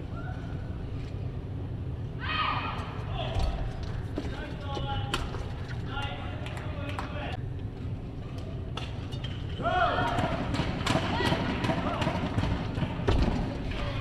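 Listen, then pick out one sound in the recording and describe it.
A badminton racket smacks a shuttlecock back and forth.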